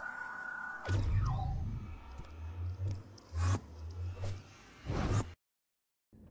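A portal hums with a low, wavering drone.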